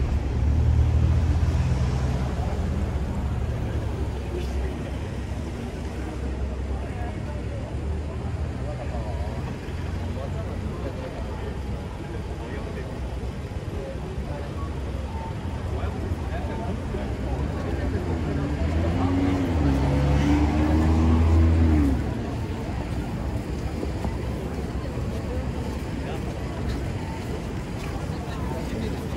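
A crowd of people murmurs nearby.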